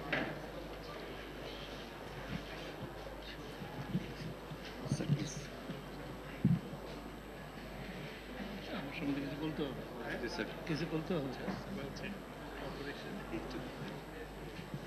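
Several men chat quietly nearby.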